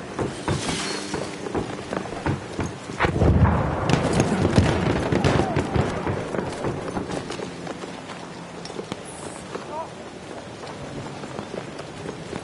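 Gunshots crack repeatedly in the distance.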